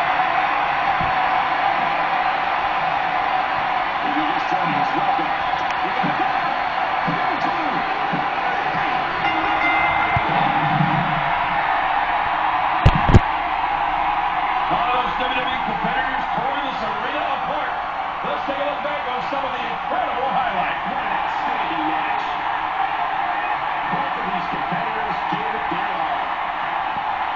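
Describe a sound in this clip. A large crowd cheers steadily through a loudspeaker.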